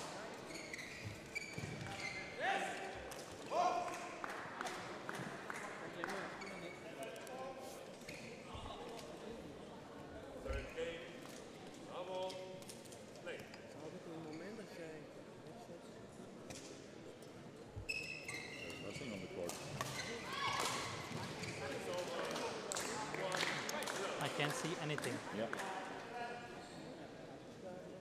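Several men talk nearby in a large echoing hall.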